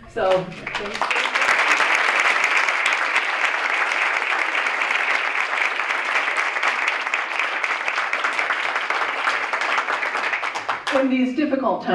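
An audience applauds in a room.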